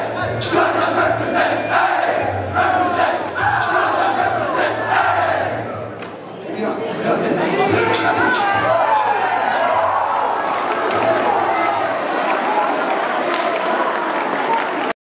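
A large crowd of teenagers chants and cheers loudly in an echoing hall.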